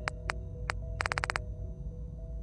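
Electronic menu beeps click rapidly.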